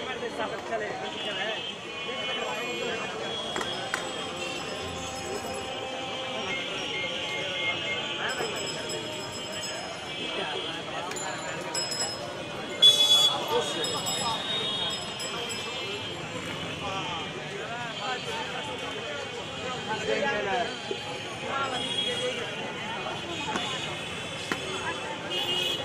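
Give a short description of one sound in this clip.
A crowd of men chatters nearby outdoors.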